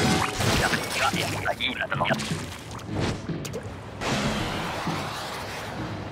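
Wet ink splashes and squelches.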